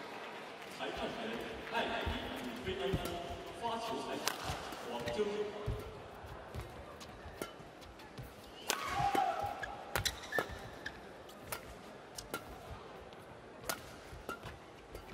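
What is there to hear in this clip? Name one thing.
Rackets strike a shuttlecock back and forth with sharp pops.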